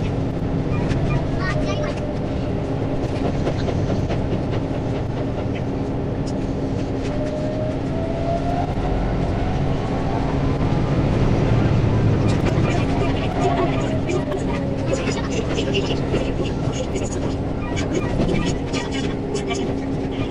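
A train's electric motor whines, rising and falling in pitch.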